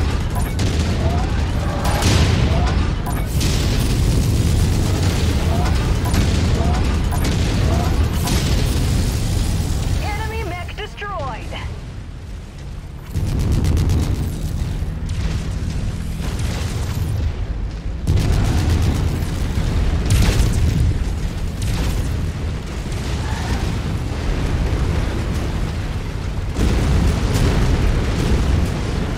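Heavy mechanical footsteps thud and clank steadily.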